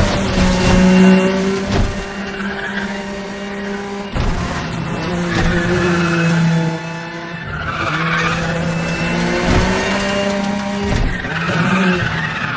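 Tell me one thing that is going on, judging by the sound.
Tyres hiss and skid over the road surface.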